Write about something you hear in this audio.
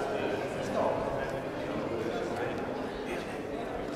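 Two men chat with animation as they walk.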